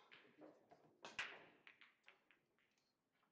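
A cue strikes a ball hard, and pool balls crack and scatter across the table.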